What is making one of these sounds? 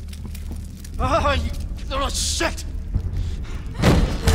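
An elderly man shouts angrily.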